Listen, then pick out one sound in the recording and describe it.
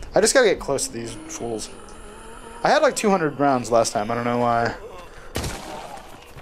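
A revolver fires a single shot.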